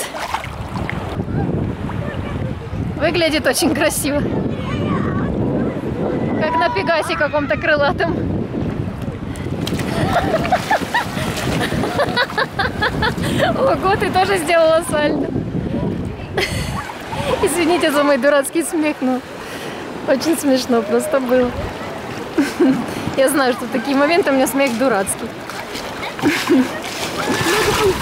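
Waves splash and lap around a float.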